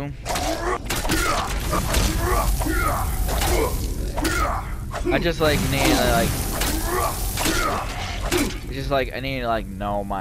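Blades clash in a fight.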